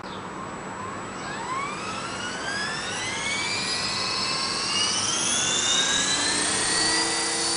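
A small toy helicopter's electric motor whines, rising in pitch as it spins up.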